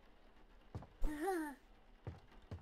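A baby babbles briefly.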